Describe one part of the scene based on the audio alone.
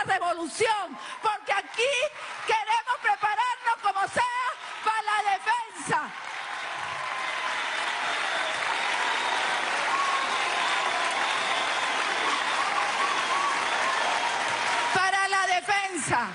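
A man speaks with animation through a loudspeaker in a large hall.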